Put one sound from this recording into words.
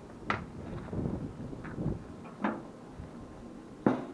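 A metal grill lid clanks shut.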